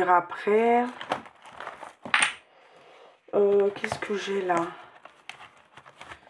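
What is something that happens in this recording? Plastic binder pages rustle and click as they are turned by hand.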